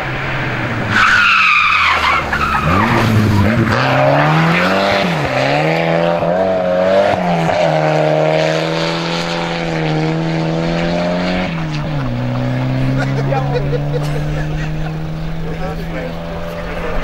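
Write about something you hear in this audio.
A car engine revs hard, rising and falling in pitch as the car speeds away into the distance.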